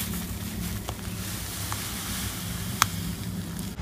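Dry powder pours softly from a paper packet.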